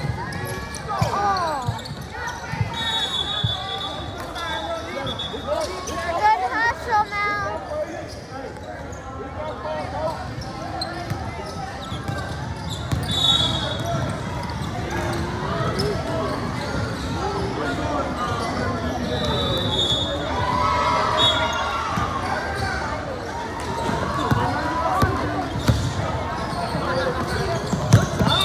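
A crowd of spectators chatters and calls out, echoing in a large hall.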